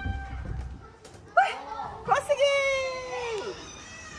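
A young woman laughs excitedly close by.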